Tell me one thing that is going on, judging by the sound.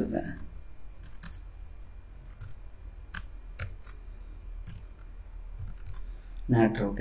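Keyboard keys click in short bursts of typing.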